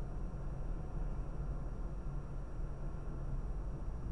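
A vehicle passes close by in the other direction.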